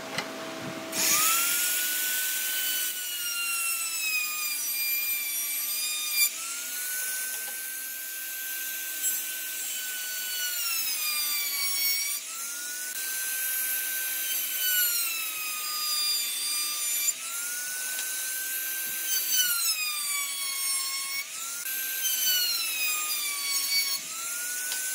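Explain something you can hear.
A trim router whines at high speed, its pitch dipping as it cuts along the edge of a wooden board.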